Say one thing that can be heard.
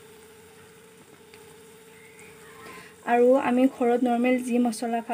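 A metal spatula scrapes and stirs food in a pan.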